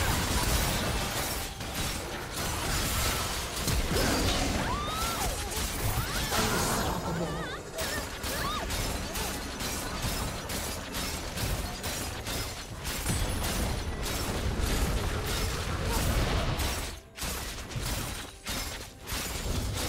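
Spell effects whoosh and crackle during a fast fight.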